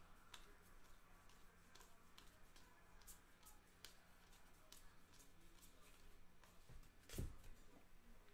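Trading cards flick and rustle as they are sorted by hand.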